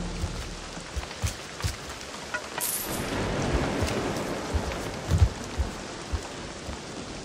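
Footsteps creak on wooden boards.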